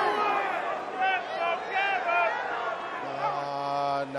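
A man speaks into a microphone over the arena loudspeakers.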